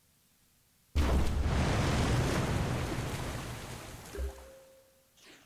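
A loud rushing burst of water swells and fades.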